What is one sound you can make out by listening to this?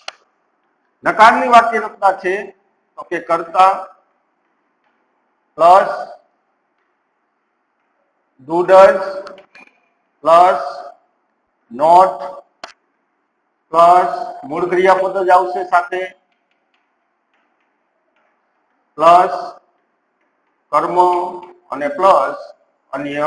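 A man speaks calmly in short phrases, close by, with pauses between them.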